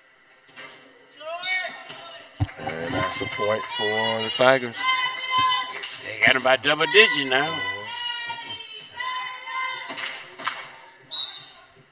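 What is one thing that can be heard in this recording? Young girls shout and cheer in a large echoing gym.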